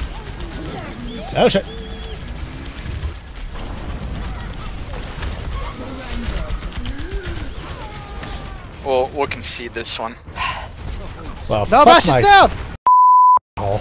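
Gunfire and explosions from a video game crackle and boom.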